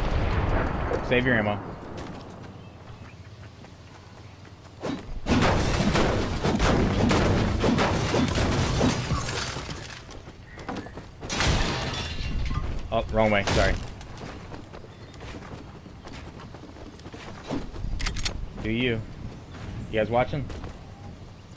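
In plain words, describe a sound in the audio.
A young man talks into a microphone in short bursts.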